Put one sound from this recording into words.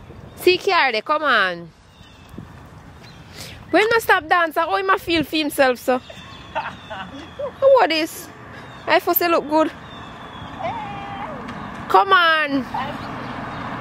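A young woman talks with animation close to the microphone outdoors.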